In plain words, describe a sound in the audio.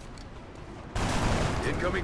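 Gunfire bursts loudly.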